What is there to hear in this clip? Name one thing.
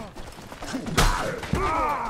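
A weapon hits with a sharp thud.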